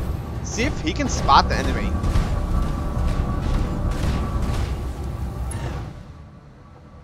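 Giant machines stomp heavily with a deep, steady rumble.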